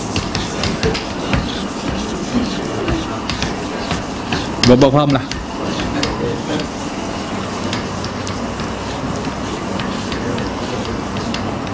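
An eraser rubs against a whiteboard.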